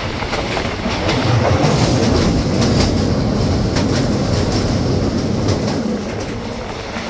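Train wheels clatter over a metal bridge.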